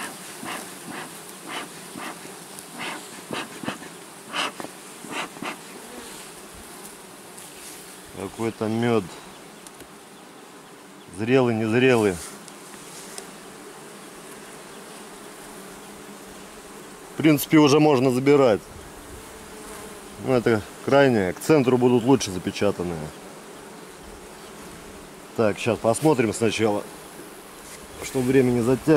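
Bees buzz steadily around a hive.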